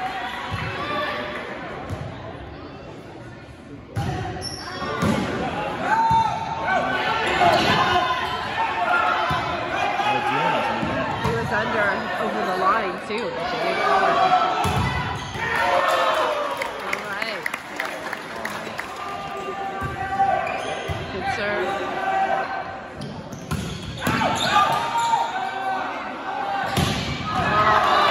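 A crowd of young spectators cheers and shouts nearby.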